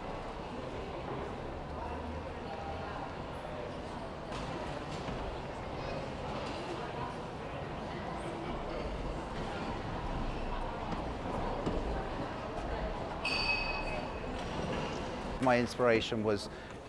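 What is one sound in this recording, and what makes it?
A crowd murmurs and chatters in a large, echoing hall.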